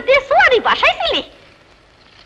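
A woman speaks up close at a lively pace.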